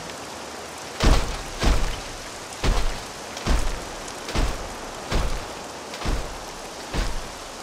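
Heavy armoured footsteps thud slowly and steadily.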